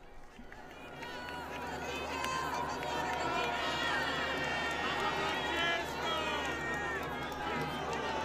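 Many men and women call out excitedly close by.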